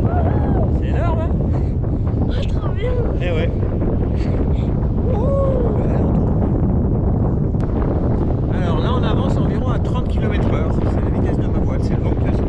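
A young child talks and laughs excitedly close by.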